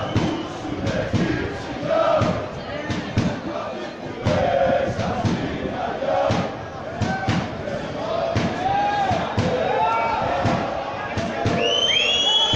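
Spectators clap their hands in a steady rhythm.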